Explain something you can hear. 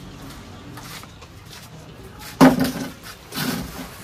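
A plastic stool knocks down on the floor.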